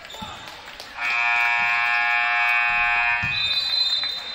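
A buzzer sounds loudly and steadily.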